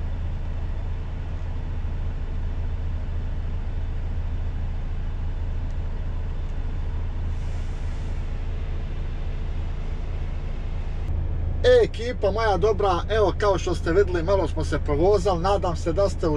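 A truck engine hums steadily at idle.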